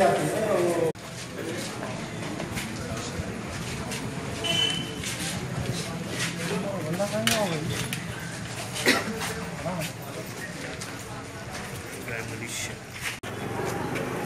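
A crowd of men murmurs outdoors.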